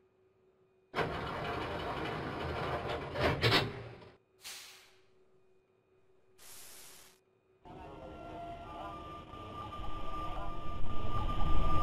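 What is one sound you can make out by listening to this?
A subway train's motor hums as the train stands at a platform.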